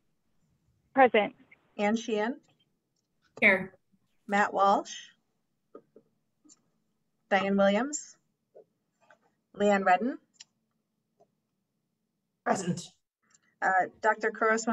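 A woman speaks calmly over an online call, in short phrases with pauses.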